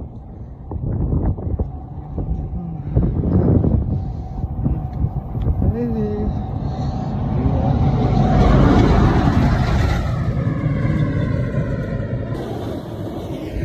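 Wind rushes and buffets loudly past a moving rider.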